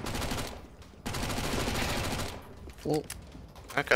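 Gunshots crack in a rapid burst.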